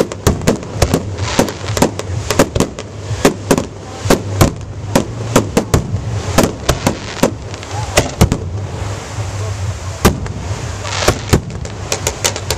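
Aerial fireworks shells burst with sharp booms in quick succession.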